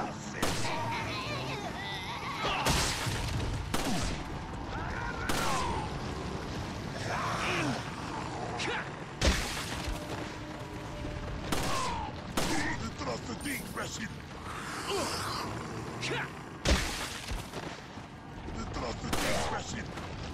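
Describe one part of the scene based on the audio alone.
Pistol shots ring out sharply, one at a time.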